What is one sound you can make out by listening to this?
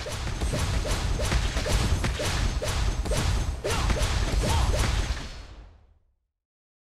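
Rapid game attack blows thud and crackle in quick succession.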